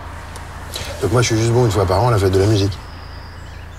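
A man speaks emotionally, close by.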